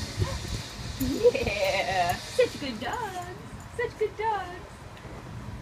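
A dog whines with high, rising and falling yelps.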